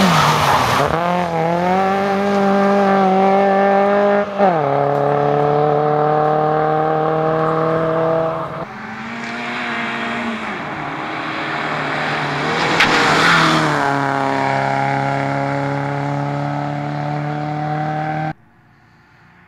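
A rally car engine revs up and down through gear changes as the car pulls away.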